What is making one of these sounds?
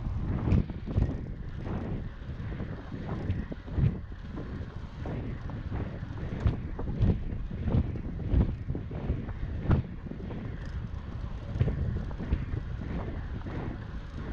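Wind rumbles and buffets against a microphone outdoors.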